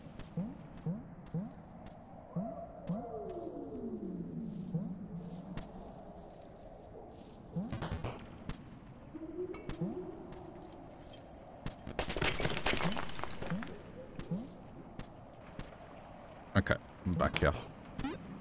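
Soft, quick blips sound as a small game character hops and runs along.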